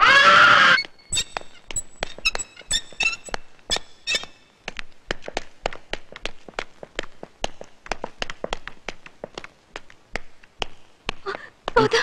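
Footsteps patter quickly down stairs.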